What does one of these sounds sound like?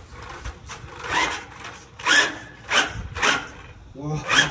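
A toy car's electric motor whirs in short bursts.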